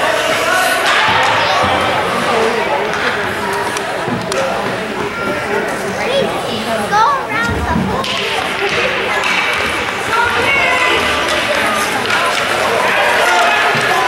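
Hockey sticks clack against the ice and the puck.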